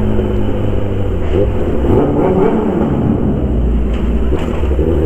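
The engine roar echoes in a tunnel.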